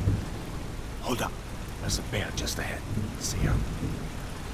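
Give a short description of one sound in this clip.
A man speaks calmly in a low voice nearby.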